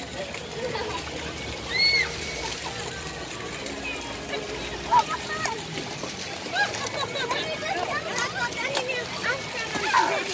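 Young children splash through shallow water.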